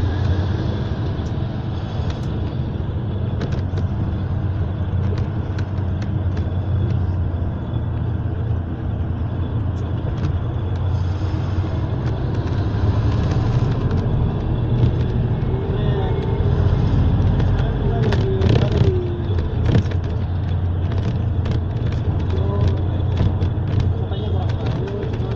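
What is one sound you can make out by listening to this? Traffic passes by on a busy street.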